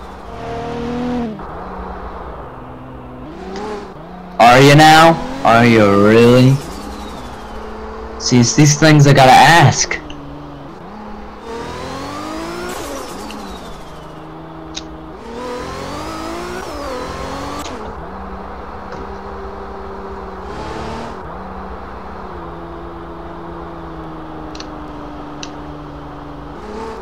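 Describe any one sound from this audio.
A car engine revs and changes gear, rising and falling in pitch.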